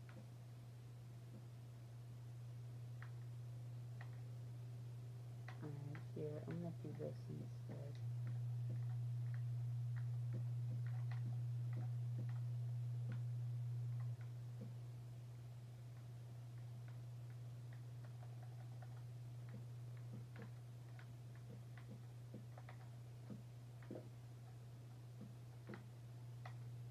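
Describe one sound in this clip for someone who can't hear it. A video game plays soft clicks and taps through a television speaker.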